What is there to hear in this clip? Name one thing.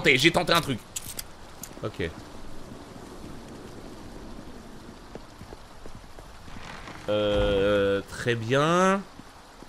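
Footsteps tread on stone paving.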